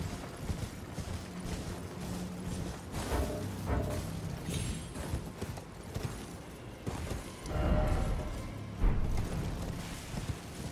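Footsteps patter quickly over grass and rock.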